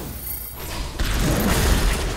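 A magic beam blasts with a loud burst.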